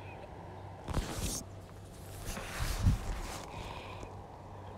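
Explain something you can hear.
Paper rustles and crinkles as it is moved.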